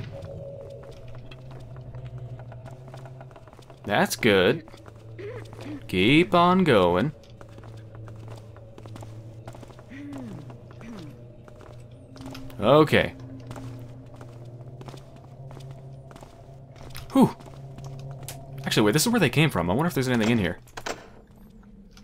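Soft footsteps tread steadily on stone.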